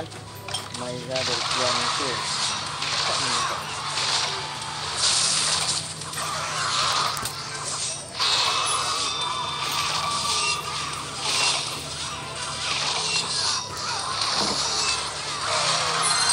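Game battle effects clash, crackle and burst in quick succession.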